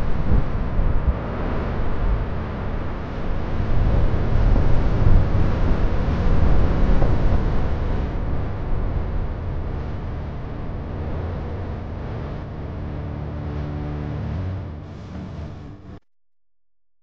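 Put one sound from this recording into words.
A car engine hums as the car drives along a street.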